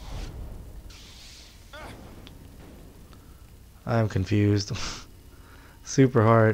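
A lightsaber hums and swooshes through the air.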